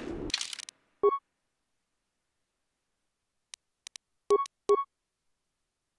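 Short electronic menu beeps chime several times.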